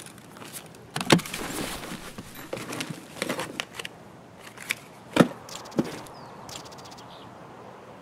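Gear items rattle and thud as they are moved about.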